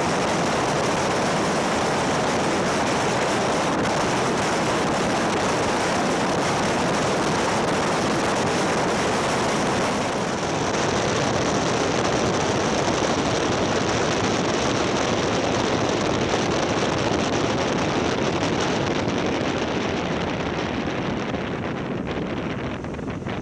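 A motorcycle engine drones steadily.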